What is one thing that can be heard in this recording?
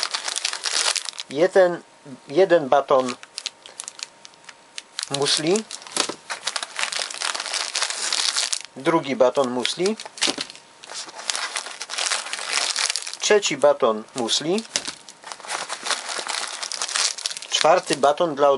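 A plastic snack wrapper crinkles and rustles close by.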